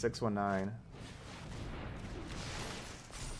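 A magical sound effect shimmers and swells.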